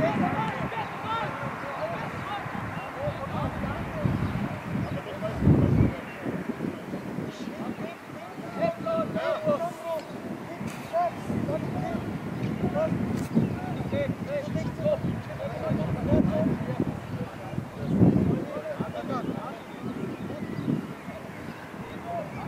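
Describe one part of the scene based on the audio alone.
Young men shout to each other across an open football pitch, heard from a distance.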